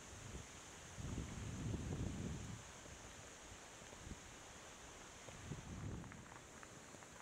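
Gusts of wind buffet the microphone with deep rumbles.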